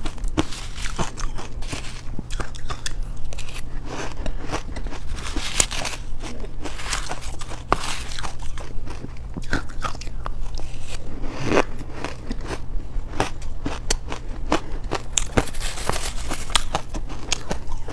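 A metal spoon scrapes and digs into shaved ice.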